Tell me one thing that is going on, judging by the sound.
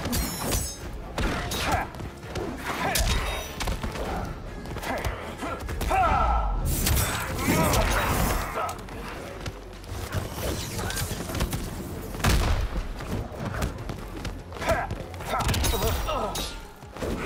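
Punches and kicks land with heavy thuds and whooshes.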